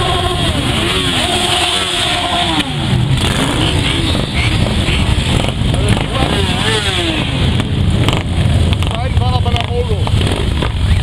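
Motorcycle engines rev up and down as riders pass.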